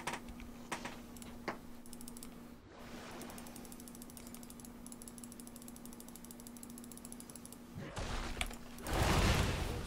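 Game sound effects of fighting clash and zap.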